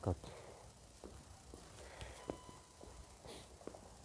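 Footsteps scuff softly on hard ground.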